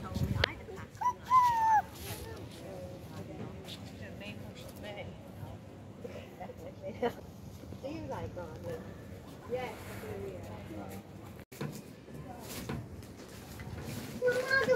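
A toddler babbles and squeals in a high voice close by.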